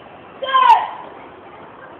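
A man lets out a sharp, loud shout close by.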